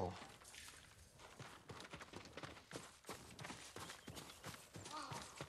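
A young woman speaks quietly into a close microphone.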